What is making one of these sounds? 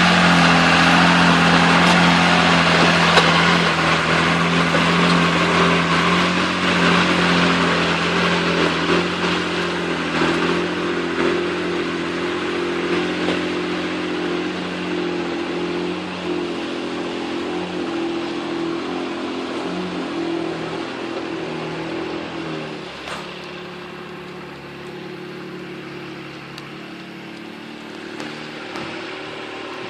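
An engine growls loudly and slowly fades into the distance.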